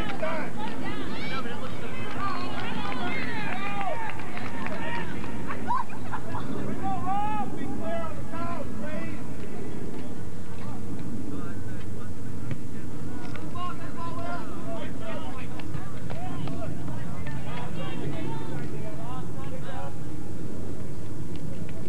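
Young players shout to each other in the distance outdoors.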